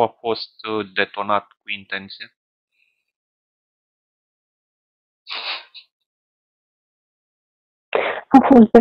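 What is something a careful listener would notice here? A young man speaks calmly into a headset microphone, in short bursts with pauses.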